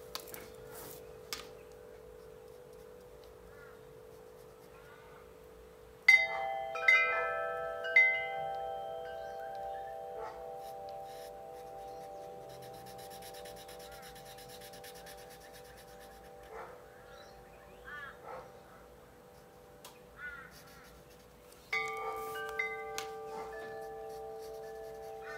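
A felt-tip marker squeaks and rubs on paper.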